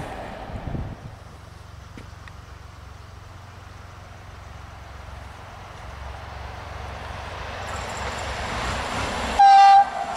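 An electric train approaches on the rails.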